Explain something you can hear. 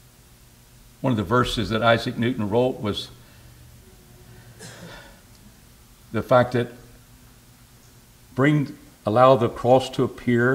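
An older man speaks calmly and earnestly into a microphone, in pauses.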